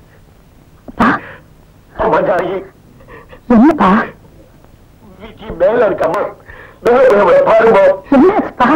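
A woman speaks in distress, her voice rising into cries.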